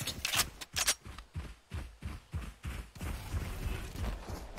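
Footsteps thud quickly and evenly on hard ground.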